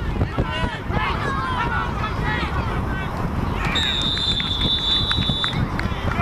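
Football players collide with thuds in a tackle.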